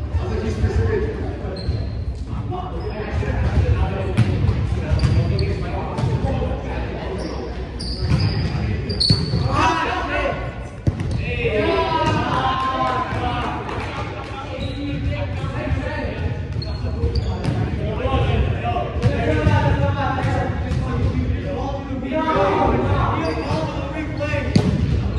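Young men talk and call out to each other in a large echoing hall.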